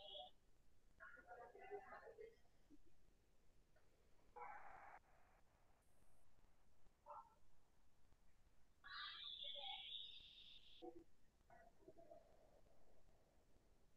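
A young woman speaks calmly and quietly over an online call, with long pauses.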